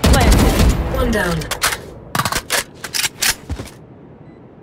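A rifle is reloaded with a metallic clack.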